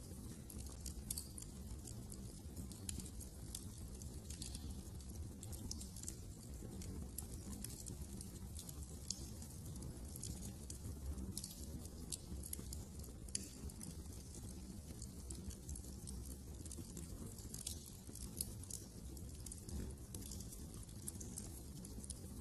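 A fire crackles and pops steadily.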